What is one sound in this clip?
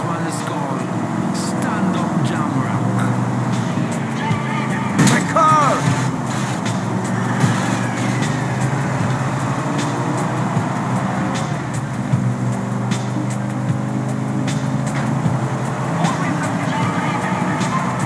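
Other cars rush past close by.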